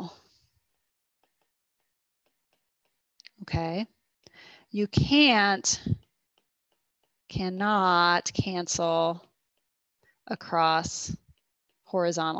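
A woman speaks calmly over an online call, explaining in short phrases with pauses.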